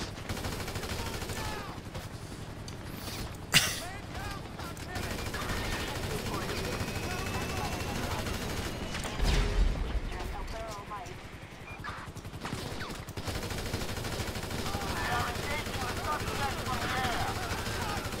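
Gunshots crack in bursts.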